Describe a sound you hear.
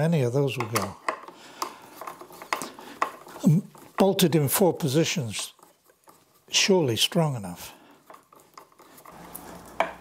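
A screwdriver turns screws, clicking faintly.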